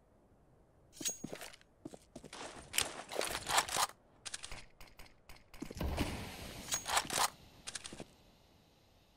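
A rifle scope clicks as it zooms in and out.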